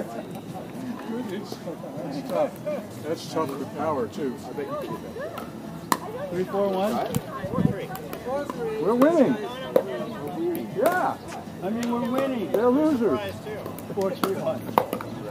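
Men talk and call out outdoors, a short way off.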